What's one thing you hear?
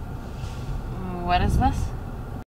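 A young woman speaks inside a car over the engine noise.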